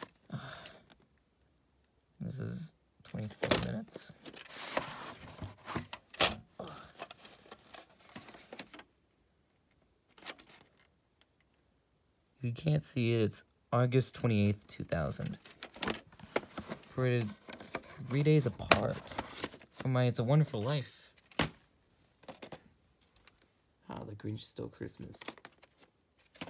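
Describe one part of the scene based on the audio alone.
Plastic tape cases click and rattle as they are handled.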